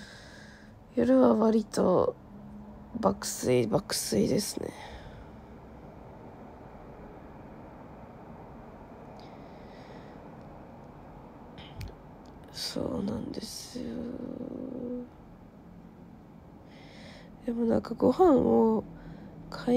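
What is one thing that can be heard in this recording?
A young woman speaks softly and close to the microphone, in short bursts.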